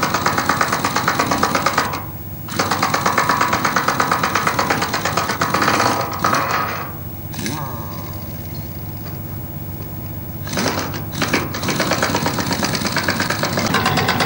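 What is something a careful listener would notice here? A power tool rattles loudly against a steel rail.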